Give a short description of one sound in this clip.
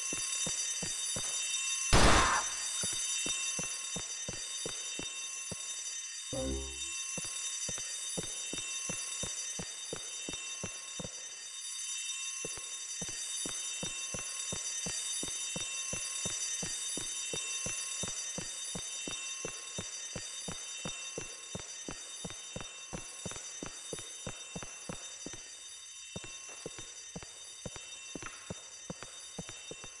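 Footsteps run quickly across a hard stone floor in a large echoing hall.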